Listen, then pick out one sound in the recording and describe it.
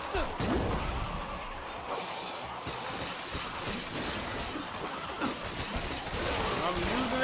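Guns fire in rapid bursts in a video game.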